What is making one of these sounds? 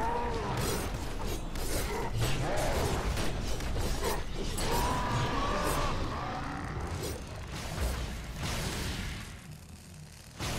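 Spell blasts and hits crash and crackle in a busy fight.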